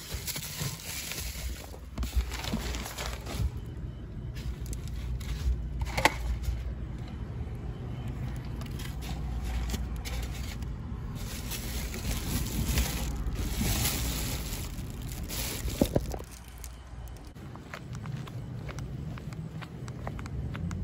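Fabric rustles and crinkles as a hand handles a padded jacket.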